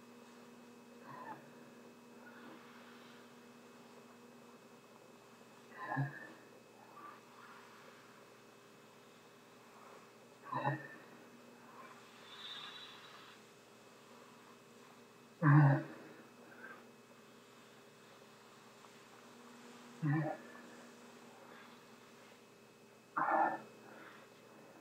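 A man gasps for breath in sharp bursts through a rainwear hood, close to the microphone.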